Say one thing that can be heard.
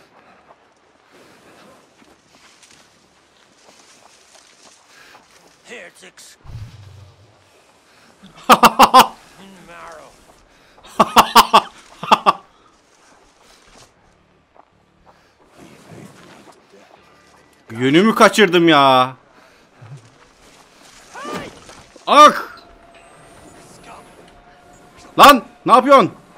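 A young man talks with animation into a close microphone, at times exclaiming loudly.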